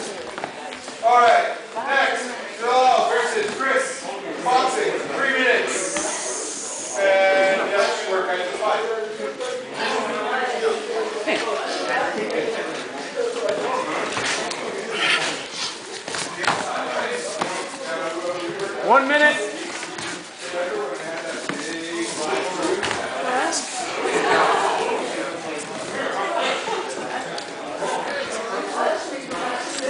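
Bodies scuffle and thump on a padded mat.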